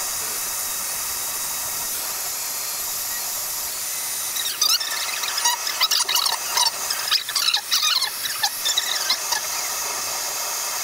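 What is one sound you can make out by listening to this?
A hot air gun blows with a steady, high hiss.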